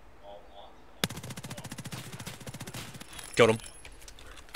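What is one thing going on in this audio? A rifle fires a rapid burst of gunshots.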